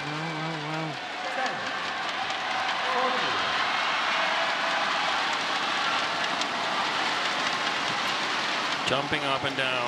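A large crowd cheers and claps in a big echoing hall.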